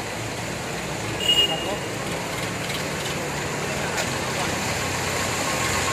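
A tractor engine rumbles as it drives through water.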